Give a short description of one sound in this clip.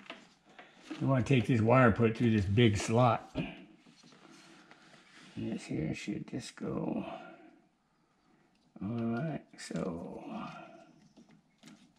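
An elderly man talks calmly up close.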